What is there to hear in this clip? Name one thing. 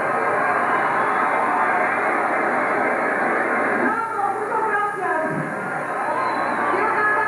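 A huge crowd roars and cheers in a large echoing arena.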